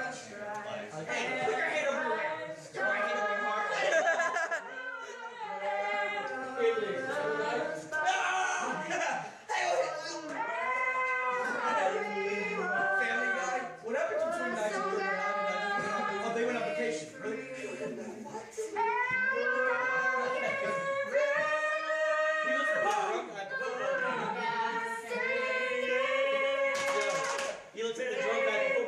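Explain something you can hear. A young man sings slowly and with feeling.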